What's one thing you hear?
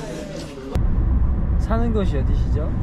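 A young man speaks calmly close by.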